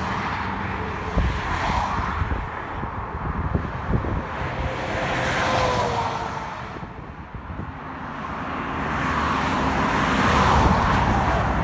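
Cars rush past on a highway, tyres humming on the road.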